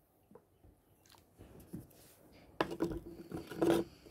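A metal can is set down on a table with a soft knock.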